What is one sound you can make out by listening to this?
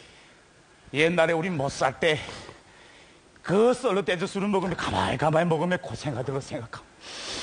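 A man speaks loudly and with animation through a microphone.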